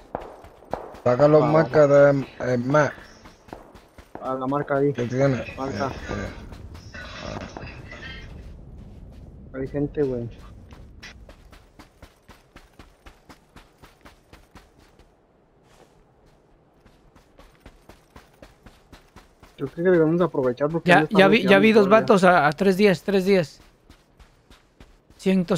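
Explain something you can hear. A young man talks casually and animatedly into a close microphone.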